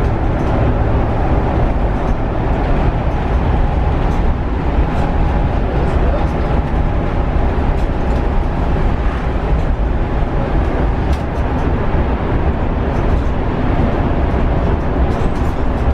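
Tyres roll with a steady roar on asphalt.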